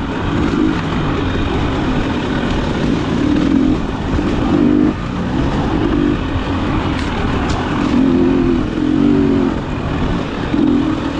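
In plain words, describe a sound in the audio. A dirt bike engine revs up and down close by as it rides along a bumpy trail.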